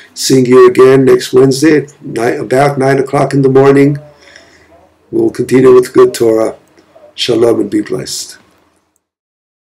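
A middle-aged man speaks calmly and warmly into a nearby microphone.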